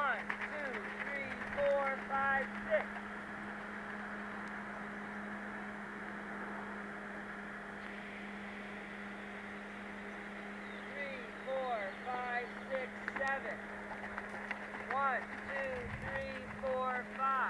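A horse's hooves thud softly on sand at a canter.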